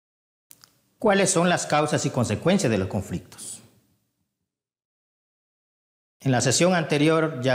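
A man speaks calmly and clearly into a microphone, with pauses.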